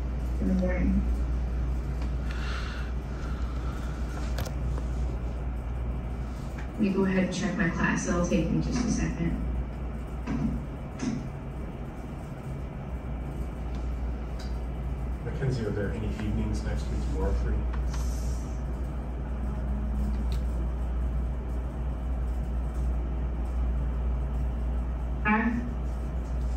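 A woman speaks over an online call through a loudspeaker, in a room with some echo.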